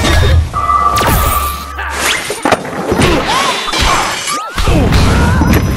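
Upbeat video game music plays.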